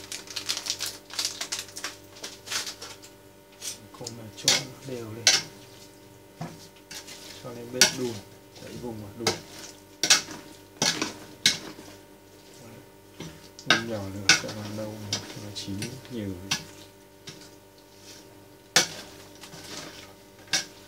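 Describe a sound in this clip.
A metal spoon scrapes and clinks against a steel pot.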